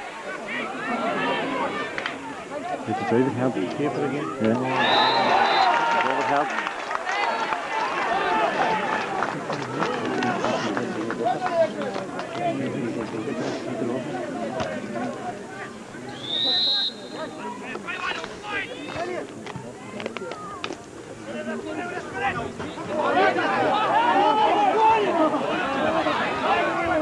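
Spectators talk and call out close by, outdoors.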